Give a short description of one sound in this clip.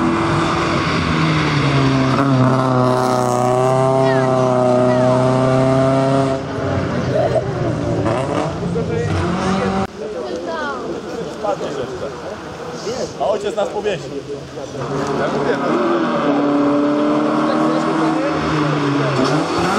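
A rally car engine roars and revs loudly as the car speeds past.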